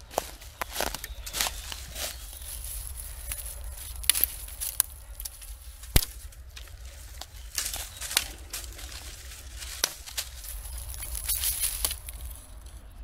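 Dry leaves rustle and crunch close by.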